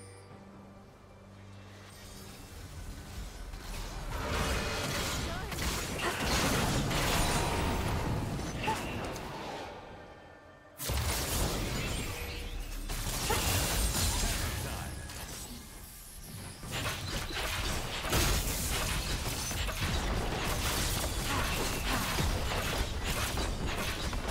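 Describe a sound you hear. Game combat sounds of spells and attacks clash and burst.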